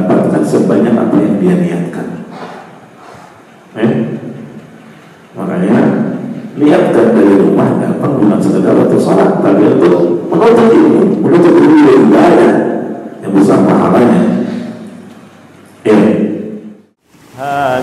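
A middle-aged man speaks calmly into a microphone, with pauses.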